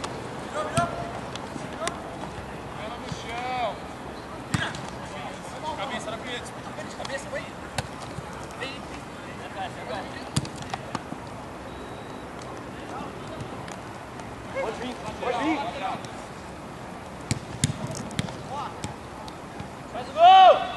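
Young men shout and call out to each other across an open pitch.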